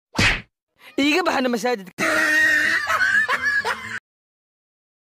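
A young man speaks loudly with animation close by.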